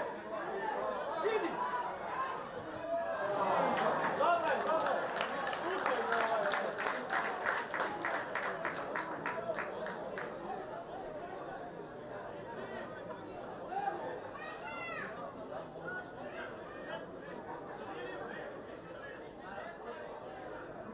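A crowd of spectators shouts and chatters nearby, outdoors.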